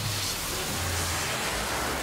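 Electricity crackles and buzzes.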